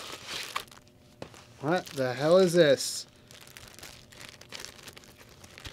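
A plastic sleeve crinkles and rustles in hands.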